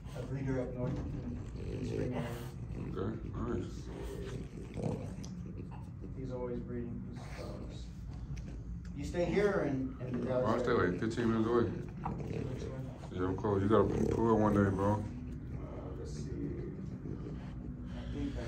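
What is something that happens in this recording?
A dog sniffs and snuffles close by.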